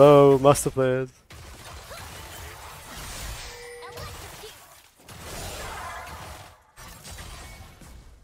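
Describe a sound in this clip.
Video game spell effects whoosh and crackle during a fight.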